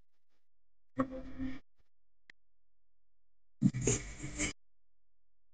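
A young man shouts with animation over an online call.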